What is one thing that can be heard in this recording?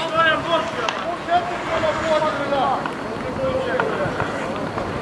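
Men shout to each other across an open-air rink.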